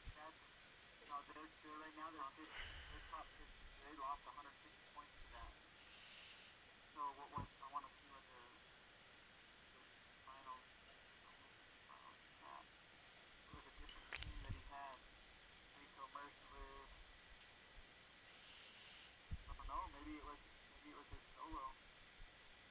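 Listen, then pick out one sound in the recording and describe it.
A young man talks into a microphone, casually and in bursts, close by.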